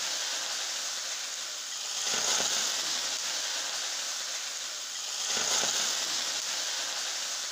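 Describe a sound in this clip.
Food sizzles steadily in a hot frying pan.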